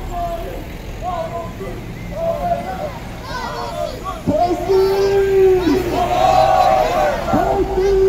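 A crowd of people chants and cheers outdoors.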